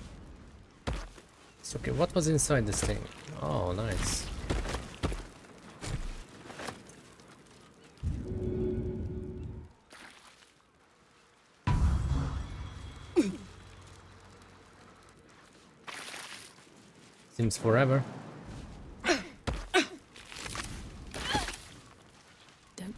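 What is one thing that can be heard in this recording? Magic spells burst and crackle.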